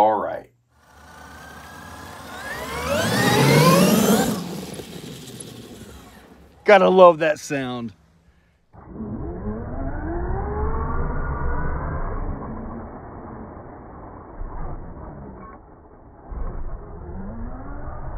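A small electric motor whines and revs up and down.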